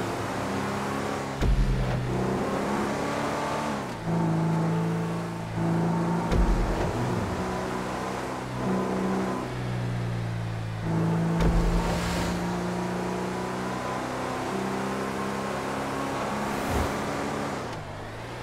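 A car engine hums steadily and shifts pitch as the car speeds along.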